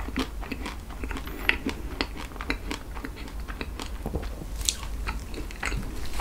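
A young man chews food close to a microphone, with wet, sticky mouth sounds.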